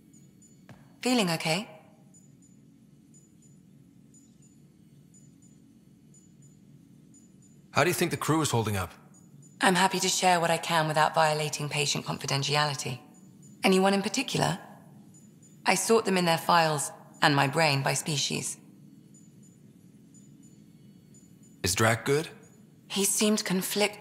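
A young woman speaks calmly and warmly.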